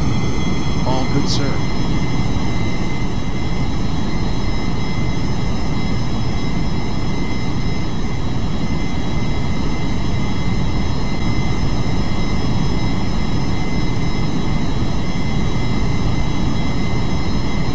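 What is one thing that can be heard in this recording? An aircraft engine rumbles steadily with a low roar.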